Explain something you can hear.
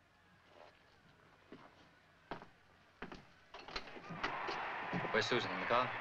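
Footsteps walk away across a floor.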